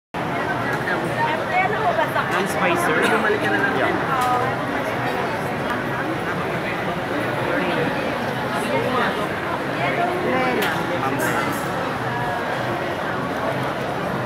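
A crowd of men and women chatters in a busy, echoing hall.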